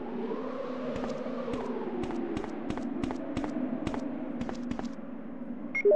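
Footsteps tap on hard concrete at a brisk pace.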